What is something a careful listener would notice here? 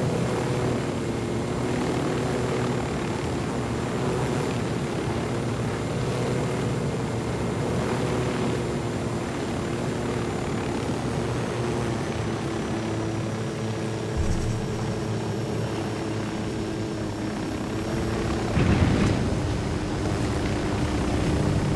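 A helicopter engine and rotor drone steadily.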